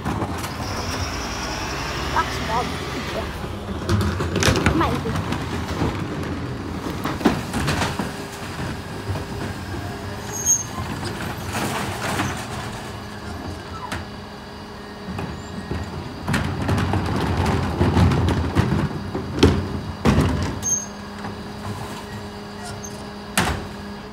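A garbage truck's engine idles steadily nearby.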